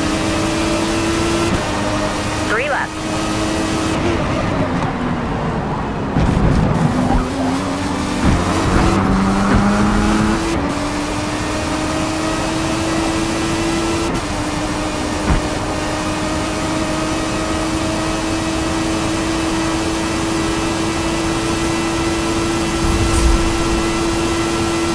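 A racing car engine roars at high speed, drops in pitch into a bend and then climbs back to a steady high whine.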